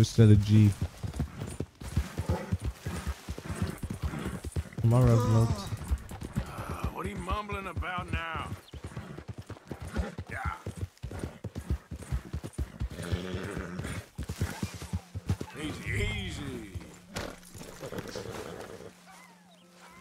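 A horse trots and gallops, its hooves thudding on grass and dirt.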